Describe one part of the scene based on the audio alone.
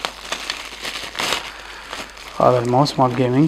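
Bubble wrap crinkles and rustles in a man's hands.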